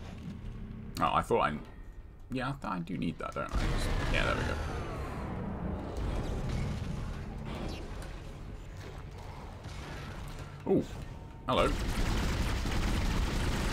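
A weapon fires with sharp energy blasts.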